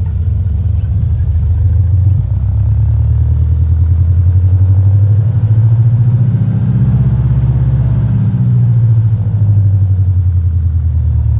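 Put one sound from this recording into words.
A small propeller plane's engine drones steadily and loudly.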